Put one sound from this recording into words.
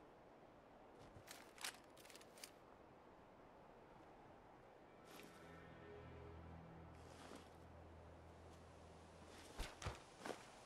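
Footsteps crunch over dirt and dry grass.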